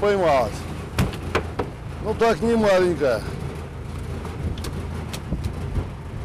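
A fish thumps on a boat deck.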